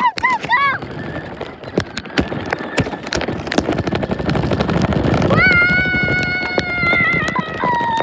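Small wheels roll and rattle over rough asphalt close by.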